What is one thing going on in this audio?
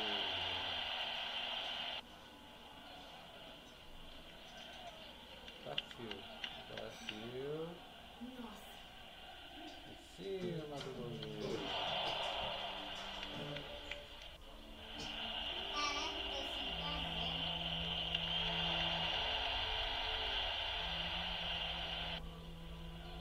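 A stadium crowd in a video game roars and cheers.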